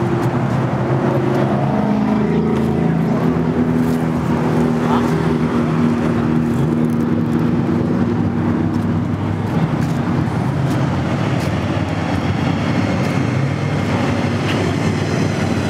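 A big engine idles with a deep, loud rumble.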